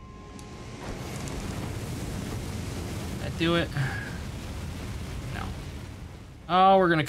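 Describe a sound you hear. A fire roars in a loud burst.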